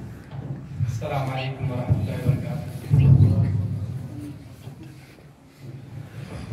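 A man speaks into a microphone in an echoing room.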